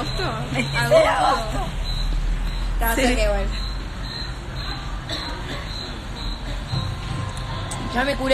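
Young women talk and laugh excitedly close to a phone microphone.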